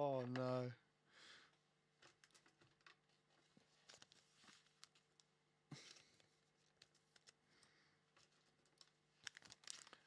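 Small items rustle and click as they are handled.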